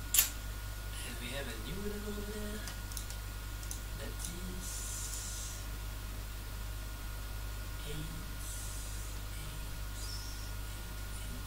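A man speaks briefly and quietly close to a microphone.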